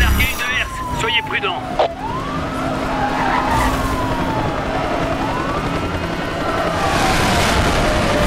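A police siren wails up and down.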